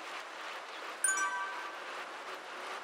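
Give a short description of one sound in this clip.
A short bright electronic chime rings once.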